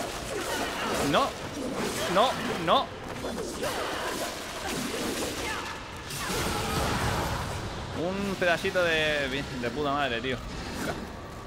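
A monster shrieks with rising and falling cries.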